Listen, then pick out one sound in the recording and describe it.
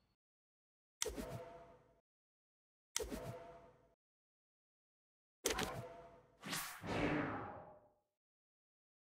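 Short, bright menu chimes ring out one after another.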